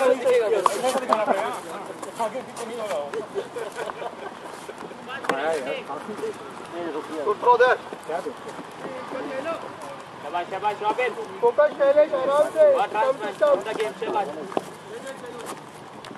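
Men talk and call out across an open field at a distance.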